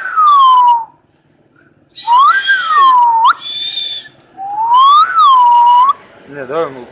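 A mynah bird whistles loud, sliding notes up close.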